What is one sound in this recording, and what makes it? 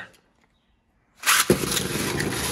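A launcher's ripcord is pulled with a quick zip.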